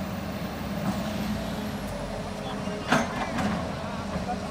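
An excavator bucket scrapes and knocks against rocky soil.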